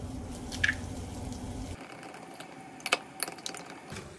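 Chopsticks whisk egg in a glass bowl.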